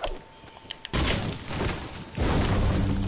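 A pickaxe swings and thuds against plants.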